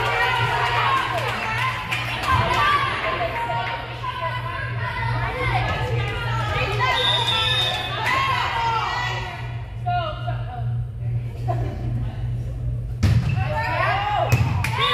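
Young women shout and call out to each other across an echoing gym.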